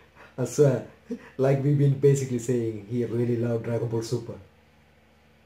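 A young man speaks with surprise close to a microphone.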